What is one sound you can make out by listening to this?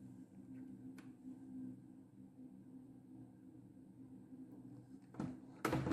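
Plastic parts click and rattle as a printer cartridge is handled.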